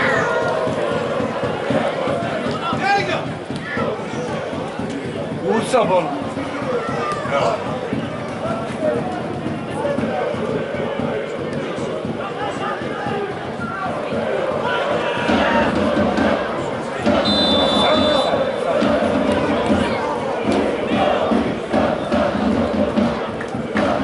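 A crowd of spectators chatters and shouts nearby outdoors.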